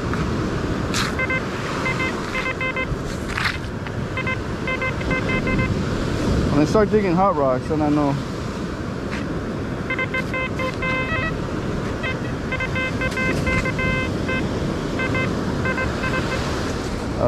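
A metal detector beeps in short repeated pulses.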